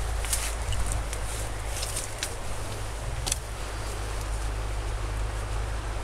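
Leaves and branches rustle as someone pushes through bushes.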